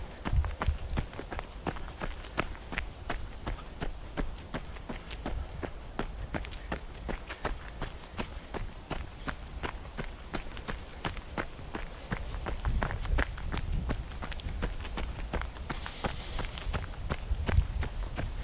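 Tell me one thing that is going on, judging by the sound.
Footsteps crunch steadily on dry leaves and gravel.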